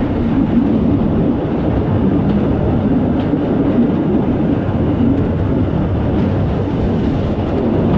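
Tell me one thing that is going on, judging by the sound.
An engine rumbles steadily close by.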